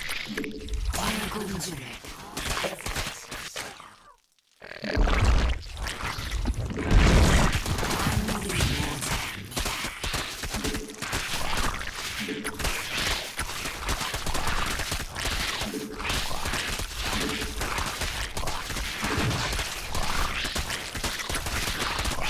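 A young man talks rapidly into a headset microphone.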